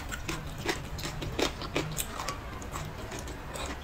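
A young woman slurps greens.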